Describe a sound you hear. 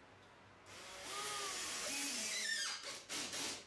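An electric screwdriver whirs as it drives a screw into wood.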